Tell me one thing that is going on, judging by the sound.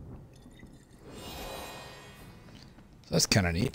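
A soft magical whoosh swells and fades.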